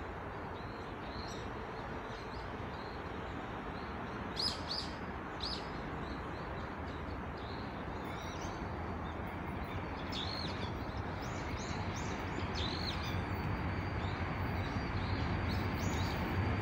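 A diesel train approaches with a low rumble that slowly grows louder.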